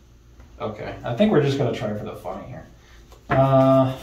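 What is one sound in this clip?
Cards tap and slide softly on a cloth play mat.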